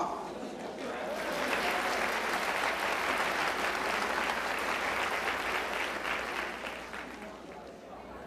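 A crowd murmurs and chatters in a large room.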